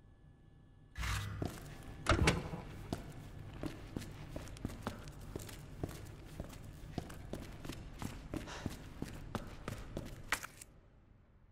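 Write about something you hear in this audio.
Footsteps walk briskly across a hard floor.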